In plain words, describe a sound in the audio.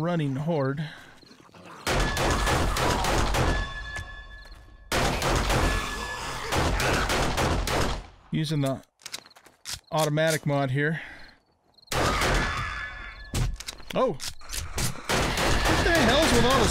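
An older man talks through a microphone.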